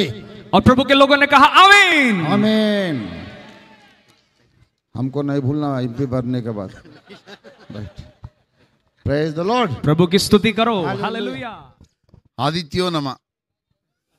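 An elderly man speaks with animation through a microphone and loudspeakers.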